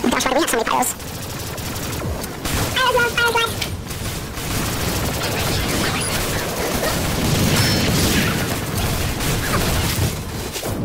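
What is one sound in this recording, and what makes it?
Gunshots and explosions crack in quick bursts.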